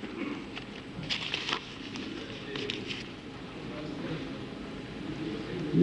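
Papers rustle as pages are turned.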